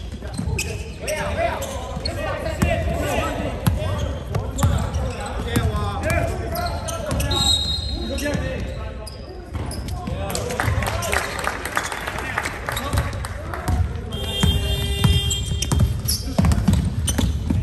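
Young men shout and call out across the hall.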